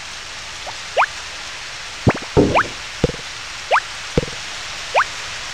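Items drop into a wooden bin with quick, sharp thuds.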